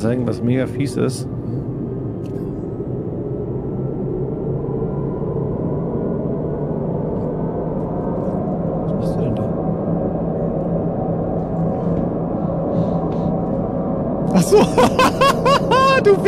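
A tram hums steadily as it rides.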